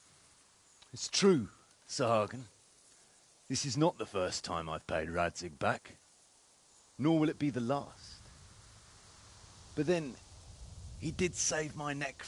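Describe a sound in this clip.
A man answers in a deep, steady voice, close by.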